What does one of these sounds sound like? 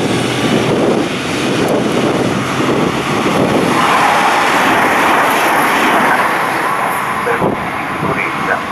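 An electric train rumbles past close by, its wheels clattering on the rails.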